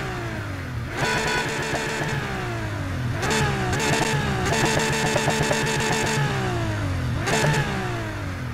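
Exhaust backfires crackle and pop.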